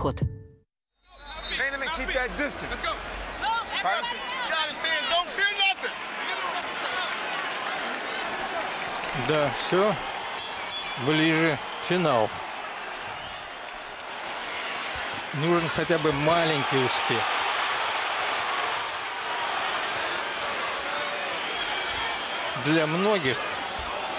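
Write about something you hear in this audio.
A large crowd roars and murmurs in a big echoing arena.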